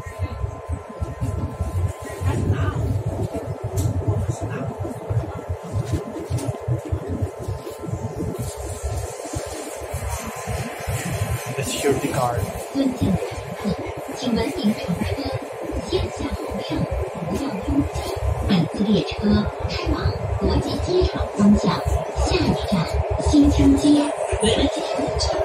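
A subway train rumbles and hums steadily as it rolls along the tracks.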